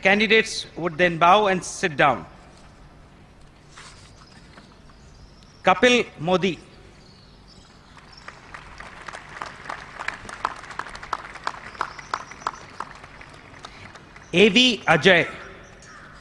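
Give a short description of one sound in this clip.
An older man reads out through a microphone and loudspeaker outdoors.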